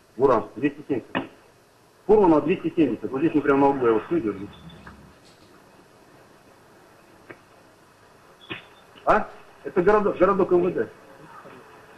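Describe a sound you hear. A man talks into a phone close by.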